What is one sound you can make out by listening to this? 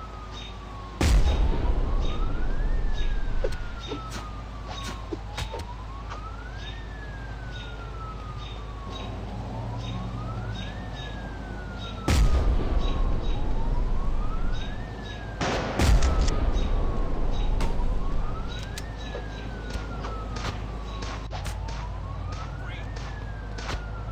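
Fists thud against a body in a scuffle.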